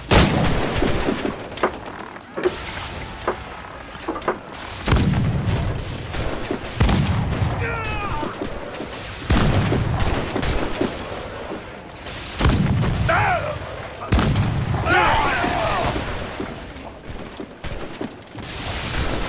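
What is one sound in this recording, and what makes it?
Cannon fire booms and explosions burst with heavy rumbling.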